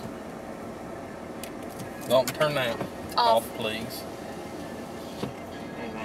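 Tyres hum steadily on a highway as a vehicle drives along.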